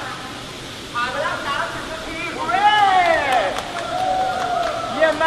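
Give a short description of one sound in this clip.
A man shouts and cheers loudly close by.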